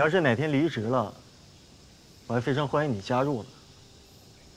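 A young man speaks calmly and pleasantly.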